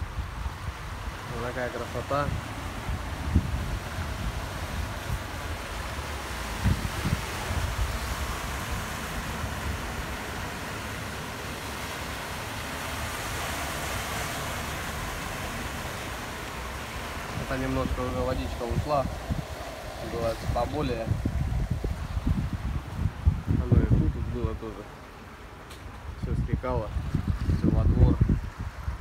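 Floodwater rushes along a street.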